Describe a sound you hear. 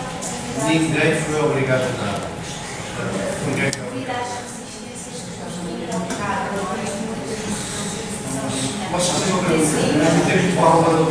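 A man speaks calmly into a microphone in a large room with a slight echo.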